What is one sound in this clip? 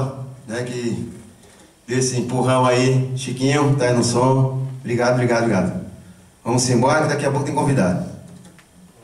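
A man calls out loudly in long drawn-out phrases through a microphone.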